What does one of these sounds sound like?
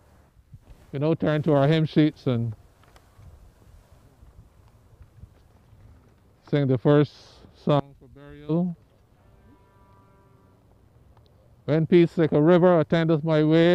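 A man speaks through a microphone outdoors, in short bursts with long pauses.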